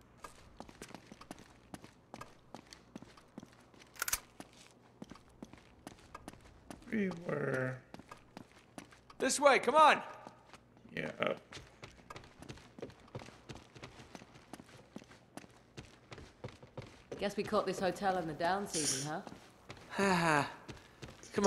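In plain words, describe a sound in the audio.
Footsteps hurry across a hard floor and up wooden stairs.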